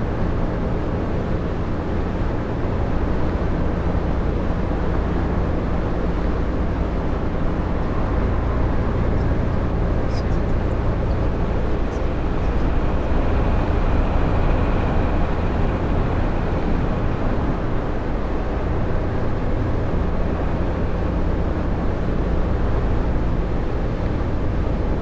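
Tyres roar on a highway.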